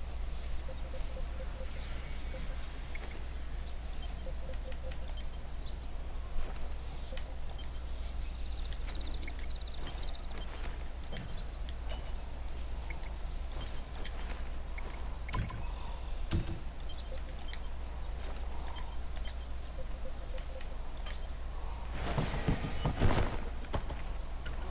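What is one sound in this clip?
Soft game menu clicks and chimes sound as menus open and close.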